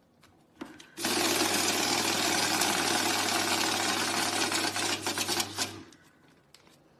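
A money counting machine whirs rapidly as it riffles through banknotes.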